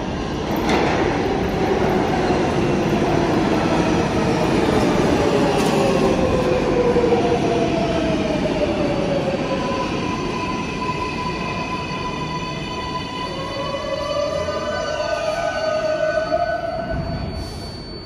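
A subway train rumbles into an echoing underground station and slows to a stop.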